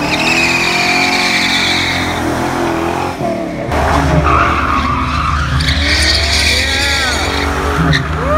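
A car engine roars loudly as the car accelerates past.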